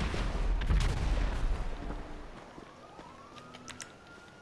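Footsteps crunch on gravel and dry ground.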